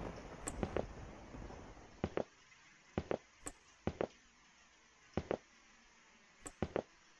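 Footsteps walk at a steady pace along an indoor floor.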